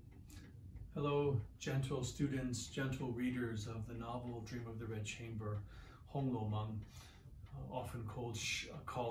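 A middle-aged man speaks calmly to the listener, close by.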